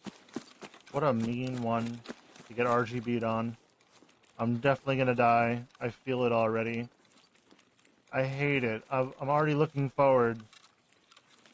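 A man talks calmly into a close microphone.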